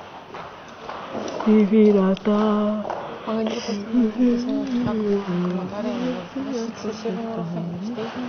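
A young woman talks back.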